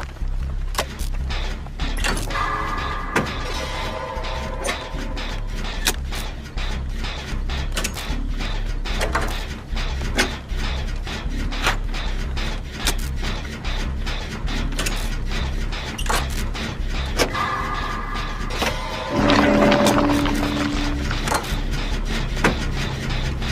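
A rattling engine clanks and clicks steadily.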